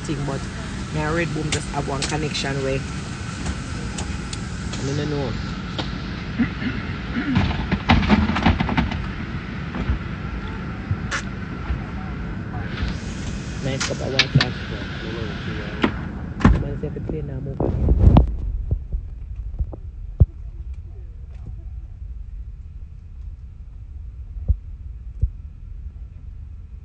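An aircraft cabin hums steadily and low.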